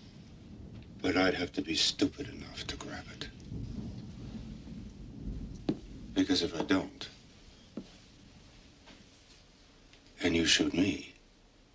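A middle-aged man speaks in a low, tense voice close by.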